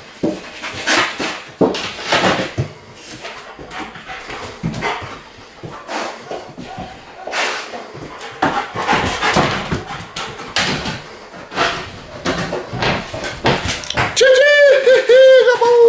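A dog's claws scratch and tap on a hard floor.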